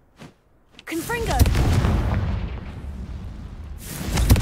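A magic spell blasts with a loud whoosh.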